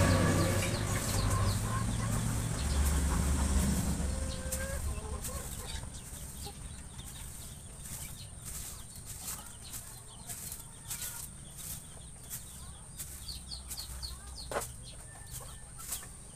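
Small birds chirp repeatedly nearby.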